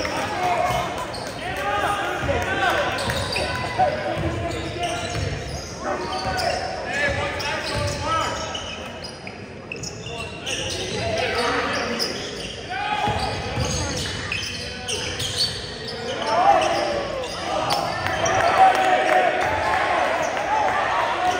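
Young men shout to each other across a large echoing gym.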